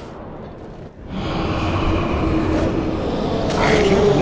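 Game spell effects whoosh and clash in a fight.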